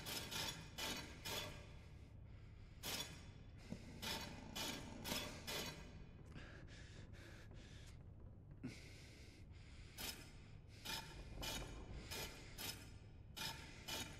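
Stone rings click and grind as they rotate.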